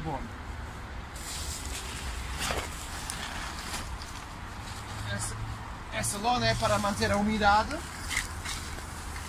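A plastic tarp rustles as it is pulled back.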